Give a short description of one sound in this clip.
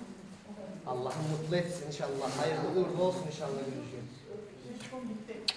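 Several women talk and murmur nearby.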